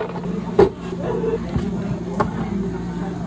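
Plastic blender jars knock on a counter.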